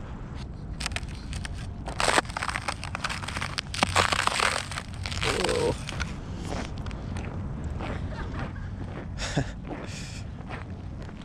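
Footsteps crunch and scrape on ice.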